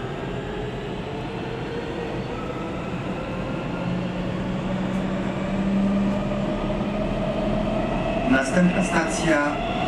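A subway train rumbles and hums steadily as it rides along the track.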